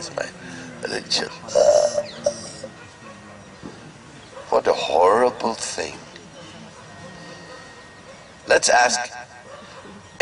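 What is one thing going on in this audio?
A middle-aged man speaks with animation through a headset microphone, in bursts with pauses.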